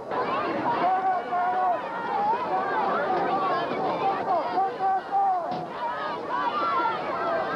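A large crowd of spectators cheers and shouts loudly outdoors.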